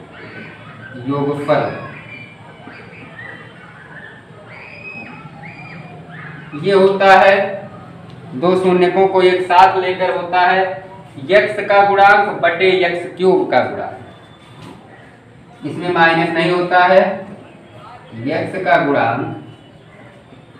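A young man explains calmly, close by.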